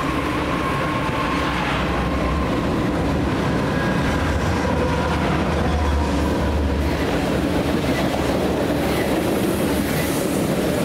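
Freight cars roll along the rails with a steady clatter and squeal.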